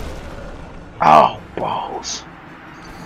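A huge beast roars loudly.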